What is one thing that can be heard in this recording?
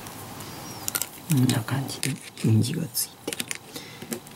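Small plastic model parts click and tap against each other and a tabletop.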